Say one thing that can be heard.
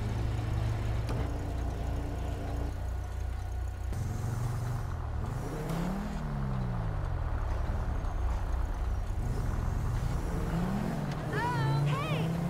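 A car engine idles and revs as the car pulls away.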